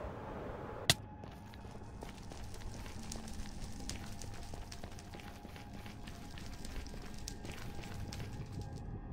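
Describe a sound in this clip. Fires crackle and pop nearby.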